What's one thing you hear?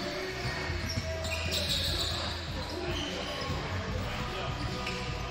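Basketballs bounce on a wooden court in a large echoing gym.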